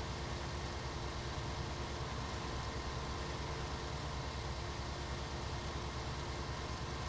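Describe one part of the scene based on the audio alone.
A diesel combine harvester engine drones while harvesting grain.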